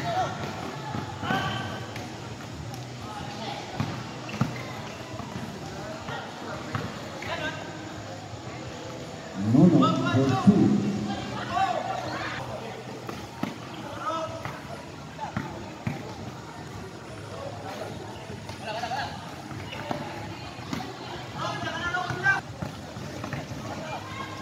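Spectators shout and cheer from the sidelines.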